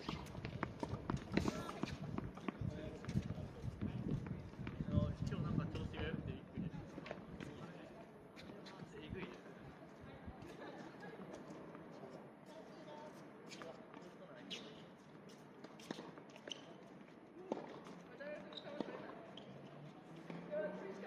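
Tennis balls are struck with rackets and bounce on a hard court outdoors.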